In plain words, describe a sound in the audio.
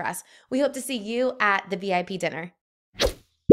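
A young woman speaks brightly into a close microphone.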